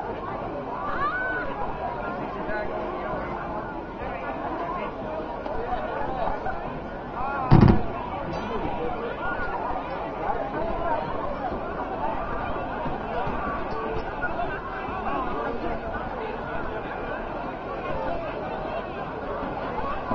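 A crowd chatters and murmurs nearby.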